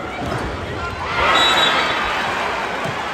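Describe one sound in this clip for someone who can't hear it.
A large crowd roars in a sudden burst of cheering.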